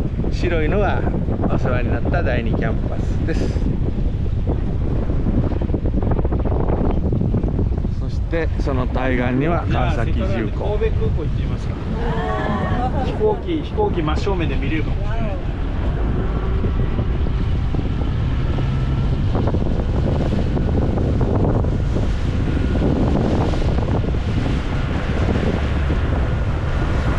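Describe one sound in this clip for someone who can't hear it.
Wind rushes loudly past the microphone on open water.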